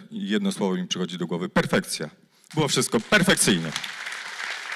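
A man speaks into a microphone over a loudspeaker in a large hall.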